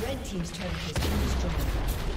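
A game tower blows up with a loud blast.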